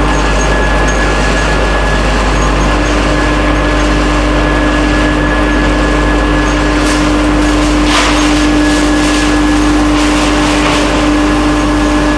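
Wood pellets rattle and clatter across a shaking sieve.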